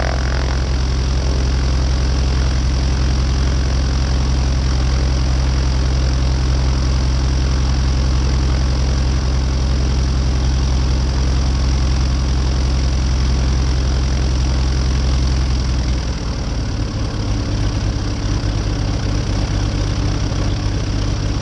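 A small propeller plane's engine drones loudly and steadily up close.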